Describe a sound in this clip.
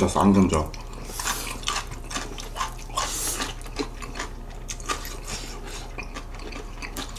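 A young man slurps noodles loudly.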